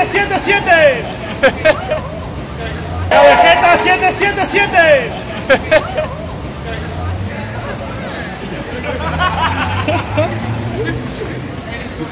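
A crowd of people chatter and murmur.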